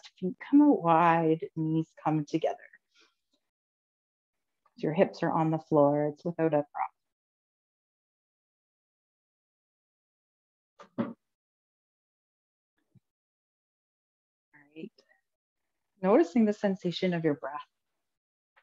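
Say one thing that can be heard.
A woman speaks calmly and slowly, close by, with pauses.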